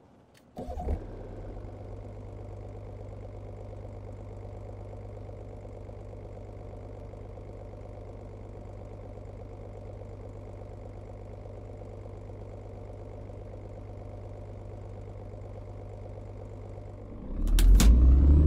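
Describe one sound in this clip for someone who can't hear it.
A diesel truck engine idles.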